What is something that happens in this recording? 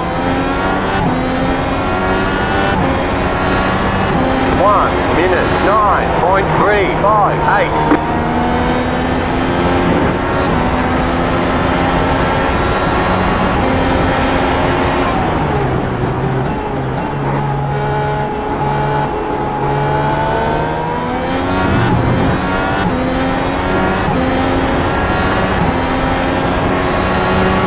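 A racing car engine screams at high revs, rising and falling as it shifts gears.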